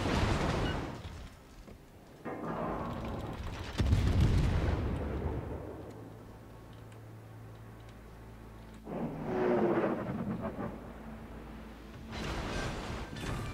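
Shells crash into the water with loud splashes.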